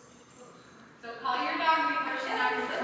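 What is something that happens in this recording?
A woman calls out excitedly in a large echoing hall.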